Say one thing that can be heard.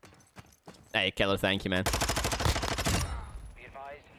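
An assault rifle fires a burst.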